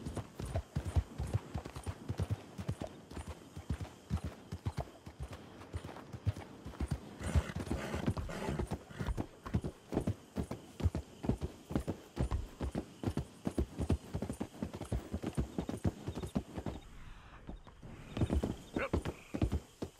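A horse gallops with quick, heavy hoofbeats.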